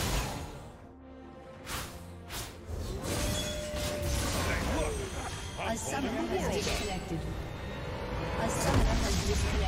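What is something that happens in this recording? Game spell effects whoosh and clash in a fight.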